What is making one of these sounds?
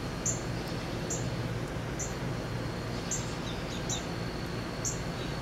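A cicada gives short, high chirps at a steady pace, about once a second.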